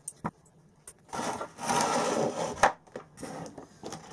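Pliers clack down on a wooden table.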